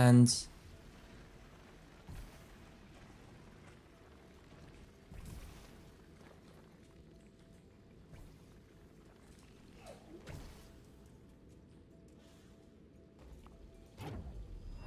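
Game sound effects whoosh and zap now and then.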